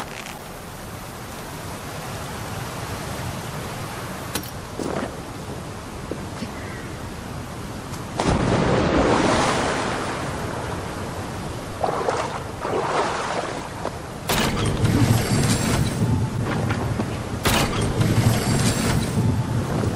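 A waterfall roars close by.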